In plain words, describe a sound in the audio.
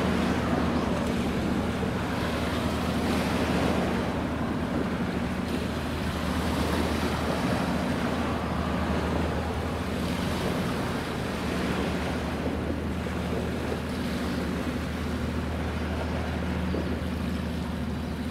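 A large ship's engine hums low and steady nearby.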